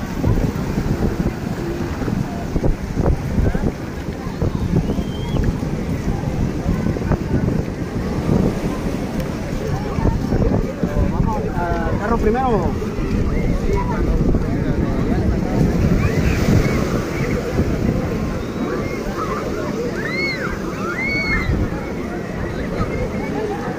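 Small waves wash onto the sand.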